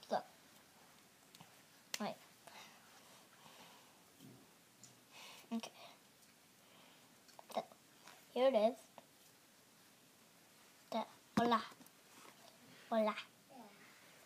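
A young boy talks close by in short, playful bursts.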